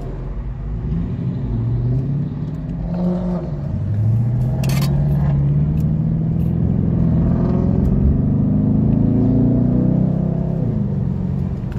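A car engine revs hard and rises in pitch as it speeds up.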